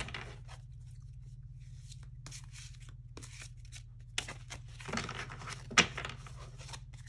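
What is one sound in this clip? Playing cards riffle and rustle as a deck is shuffled.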